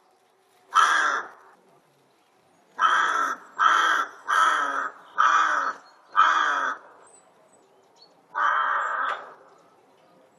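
A crow caws loudly in a series of harsh calls.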